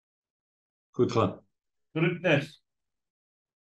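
An elderly man speaks calmly through an online call.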